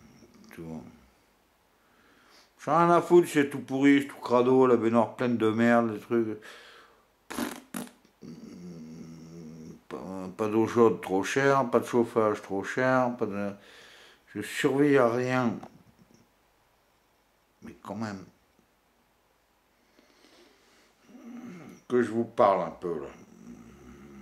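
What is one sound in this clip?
An older man talks close up, with animation, in bursts.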